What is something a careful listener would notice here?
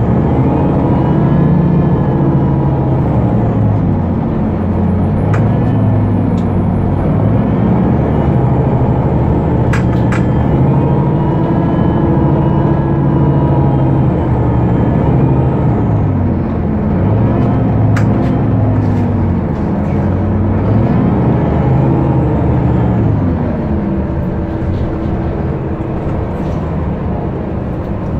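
A diesel city bus engine drones, heard from inside the bus as it drives and accelerates.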